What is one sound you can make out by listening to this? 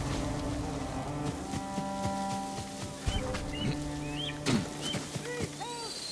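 Footsteps rustle through tall grass as a man runs.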